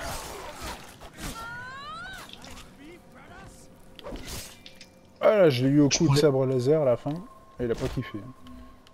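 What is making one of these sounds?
A blade strikes flesh with wet thuds.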